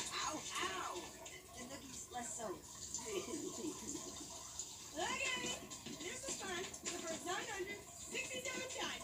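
An aquarium filter bubbles and hums softly.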